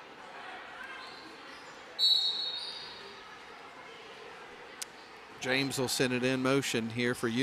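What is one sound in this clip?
A crowd murmurs quietly in a large echoing gym.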